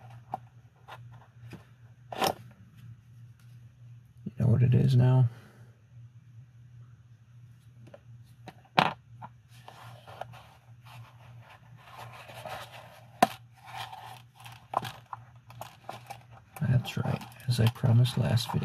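Gloved hands rustle and handle a leather wallet.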